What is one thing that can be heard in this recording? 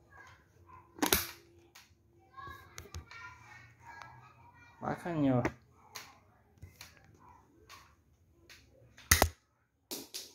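A shotgun's metal action clicks and clacks.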